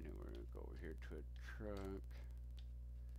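An older man speaks casually into a close microphone.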